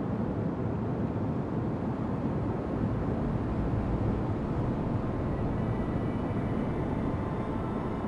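Water rushes along a ship's hull.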